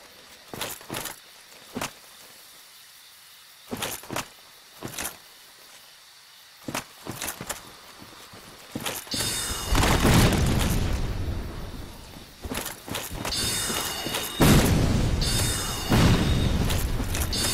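Armoured footsteps clank on the ground.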